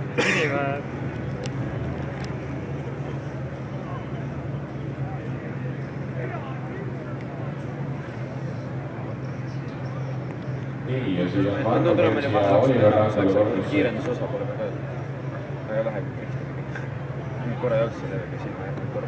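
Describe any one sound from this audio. Racing car engines roar and rev in the distance.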